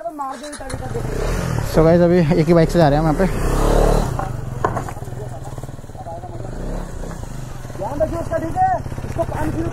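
A motorcycle engine idles and revs up and down loudly outdoors.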